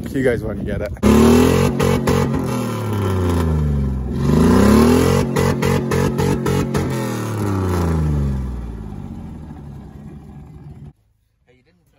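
An engine revs hard, rising and falling.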